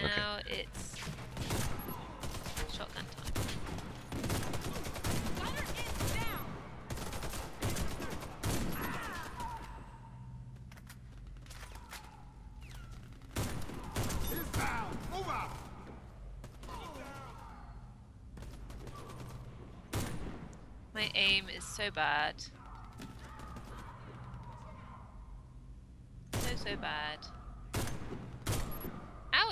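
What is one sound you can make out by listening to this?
Sniper rifle shots crack loudly, each with a sharp echo.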